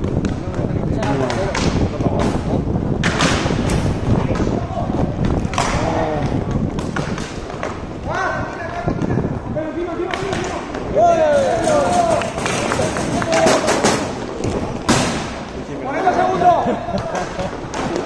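Men shout and call out to each other across an open rink.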